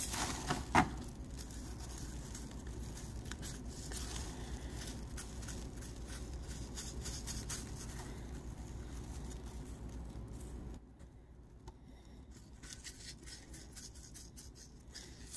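Fingers press and rub grit into a foam block with a soft scratching.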